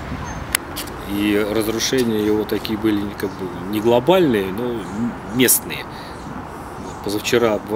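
A middle-aged man speaks with animation close to the microphone, outdoors.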